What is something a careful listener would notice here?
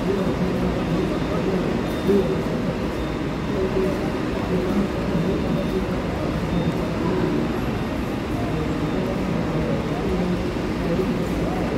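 A large diesel bus engine rumbles steadily as the bus rolls slowly past.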